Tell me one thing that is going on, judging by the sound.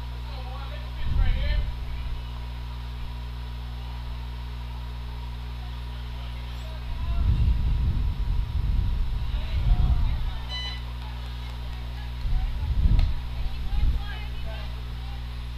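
Young women call out to each other from a distance across an open field.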